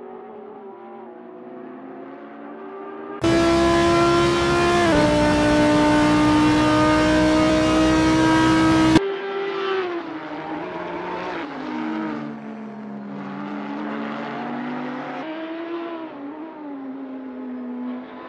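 A racing car engine roars from a distance, rising and falling in pitch.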